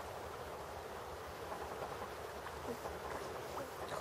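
A beaver dives with a splash into water.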